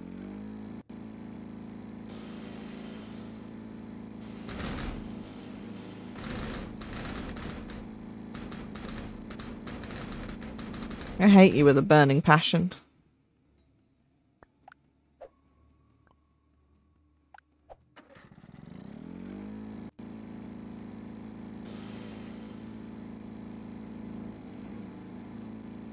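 A lawn mower engine hums steadily, cutting out and then starting up again.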